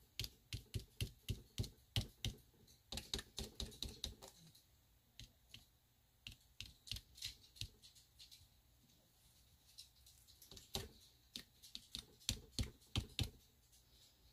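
A sponge taps lightly and quickly against paper.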